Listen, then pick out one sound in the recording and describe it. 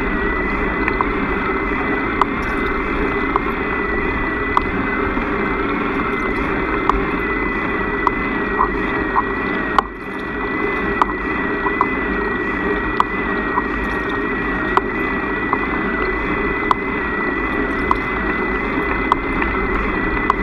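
A motorcycle engine hums steadily as it rides along a road.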